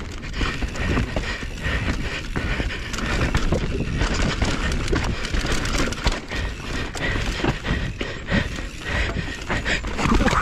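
Bicycle tyres rumble fast over a rough dirt trail.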